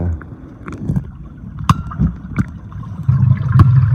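A metal tank clinks and knocks underwater.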